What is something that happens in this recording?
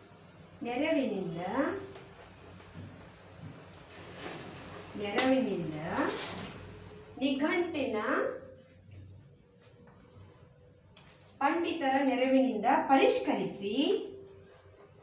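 A woman speaks clearly and slowly nearby, as if teaching.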